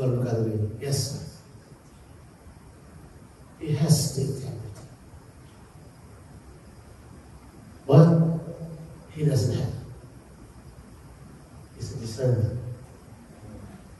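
A man speaks with animation in short bursts through a microphone.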